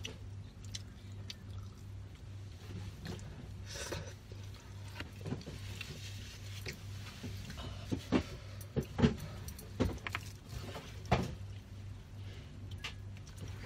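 A young woman slurps and chews noodles close to a microphone.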